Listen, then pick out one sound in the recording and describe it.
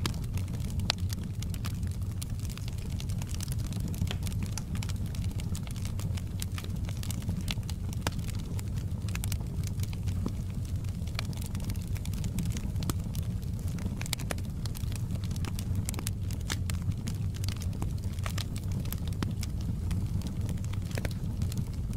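A wood fire roars steadily with a low rumble.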